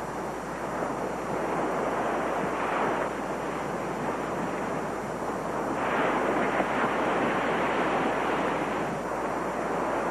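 Small waves wash gently onto a beach.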